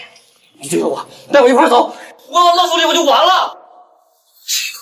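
A young man speaks with animation, close by.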